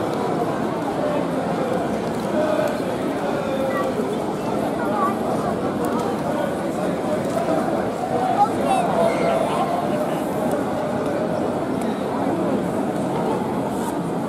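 A crowd of people chatters and murmurs outdoors, close by.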